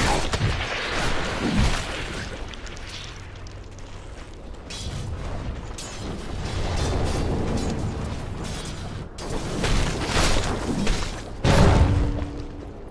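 Blades clash and strike repeatedly in a fight.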